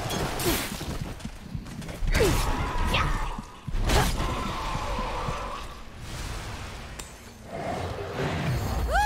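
Heavy footsteps thud on a hard stone floor.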